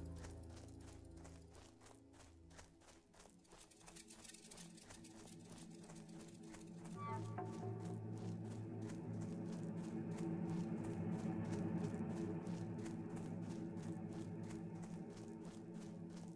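Quick footsteps patter steadily through dry grass.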